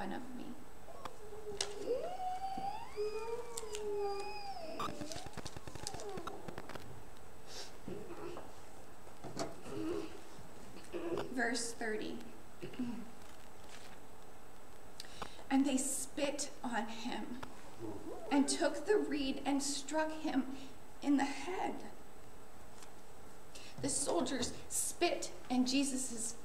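A young woman speaks clearly into a nearby microphone.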